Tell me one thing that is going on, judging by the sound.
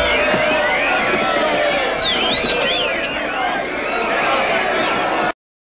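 A crowd of men shouts and cheers loudly.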